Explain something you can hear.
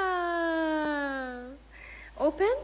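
A toddler babbles in a high voice close by.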